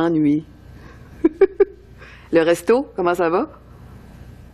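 A woman talks on the phone with animation.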